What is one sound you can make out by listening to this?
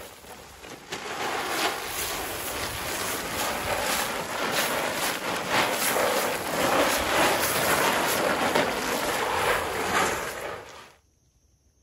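Grain pours out of a sack and patters onto dry leaves.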